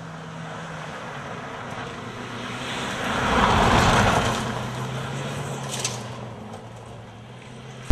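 Tyres skid and spray gravel.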